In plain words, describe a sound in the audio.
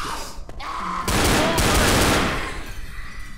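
A pistol fires a loud shot that echoes briefly.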